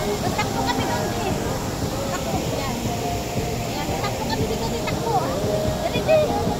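Water splashes steadily from a fountain.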